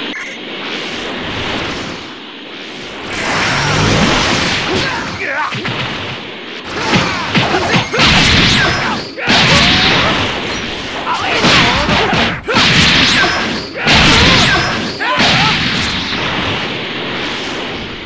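Energy blasts roar and whoosh in bursts.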